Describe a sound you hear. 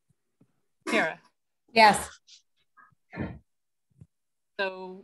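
A man speaks in short bursts over an online call.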